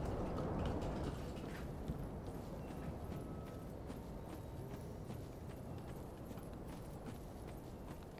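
Armoured footsteps crunch over ground.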